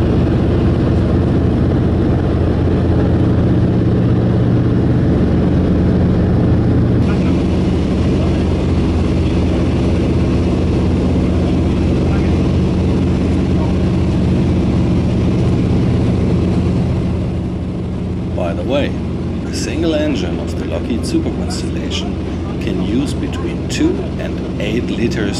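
Propeller engines drone loudly and steadily, with a deep throb.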